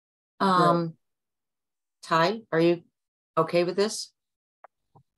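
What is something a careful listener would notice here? A middle-aged woman speaks briefly over an online call.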